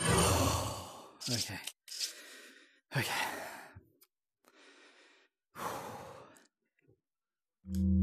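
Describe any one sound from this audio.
Menu clicks and whooshes sound in short bursts.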